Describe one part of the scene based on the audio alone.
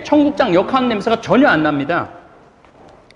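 A middle-aged man speaks cheerfully and animatedly close by.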